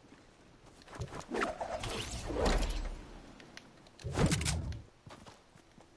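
Wind rushes loudly as a game character glides down through the air.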